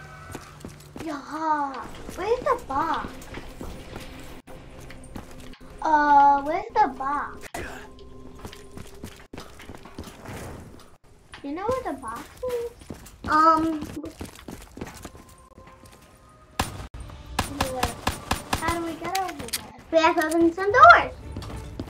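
Young boys talk with animation close to a microphone.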